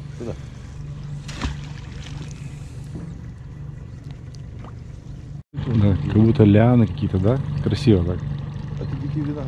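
A boat motor hums steadily.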